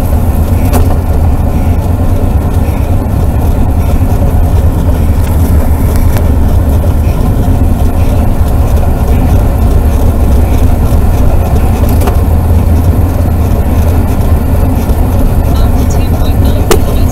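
Tyres hum steadily on asphalt.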